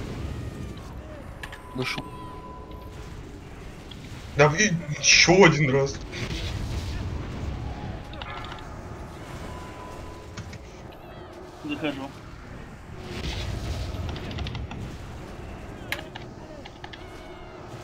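Weapons clash in a battle.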